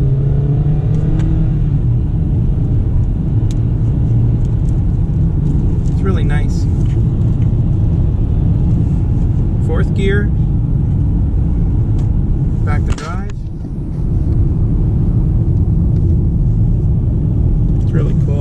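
A car engine hums and rises steadily as the car speeds up.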